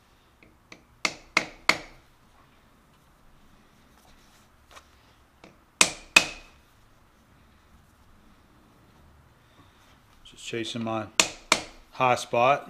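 A rubber mallet taps sharply on a metal lathe chuck.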